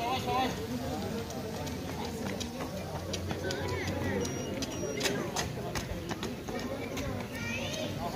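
Runners' footsteps slap on asphalt as they pass close by.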